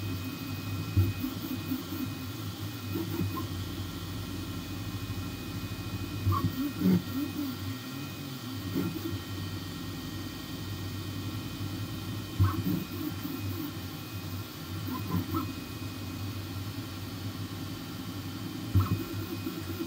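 A machine clicks and clunks now and then.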